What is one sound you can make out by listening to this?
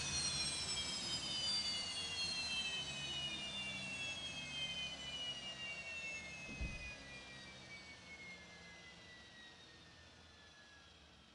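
Jet engines whine loudly, their pitch slowly falling as they spool down and fade.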